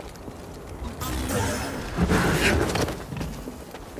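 A laser sword swooshes through the air in quick swings.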